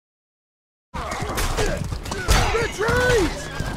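Weapons clash in a noisy battle.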